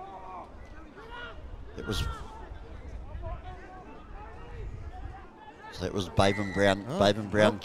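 Rugby players shout and call to each other outdoors on an open field.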